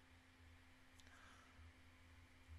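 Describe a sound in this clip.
A young woman makes a soft sound close to a microphone.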